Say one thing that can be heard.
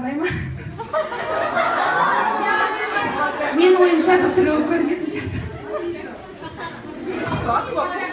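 A young man speaks into a microphone in a lively, chatty way.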